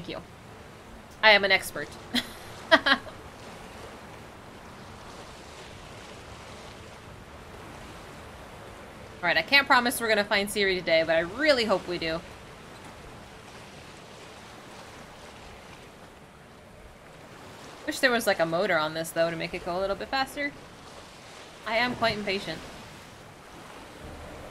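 Waves splash softly around a sailing boat.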